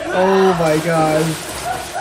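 Water splashes in a pool.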